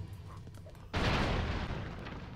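Loud explosions boom and roar.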